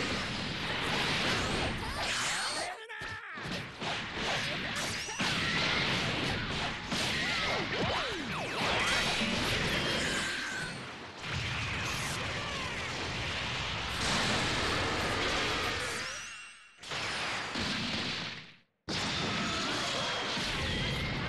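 Punches and blasts crash in quick bursts.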